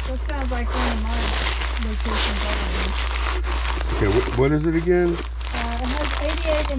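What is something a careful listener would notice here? Cards in plastic sleeves rustle as fingers flick through them.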